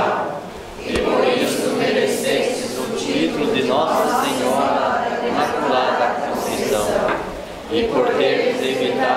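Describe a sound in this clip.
A group of men and women read aloud together in unison.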